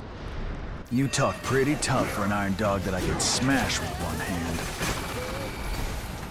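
A blade slashes with a crackling burst of energy.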